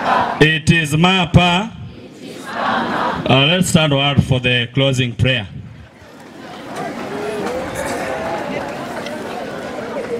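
A man speaks with animation into a microphone, heard loudly over a loudspeaker outdoors.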